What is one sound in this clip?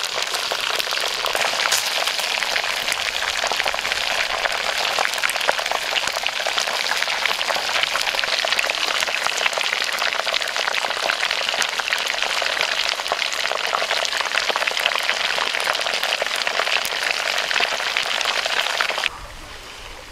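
Hot oil sizzles and crackles steadily.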